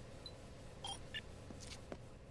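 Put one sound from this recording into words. Electronic menu blips chime.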